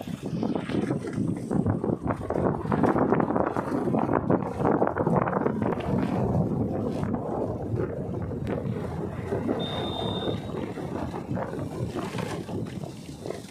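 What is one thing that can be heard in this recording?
Wind buffets the microphone while moving.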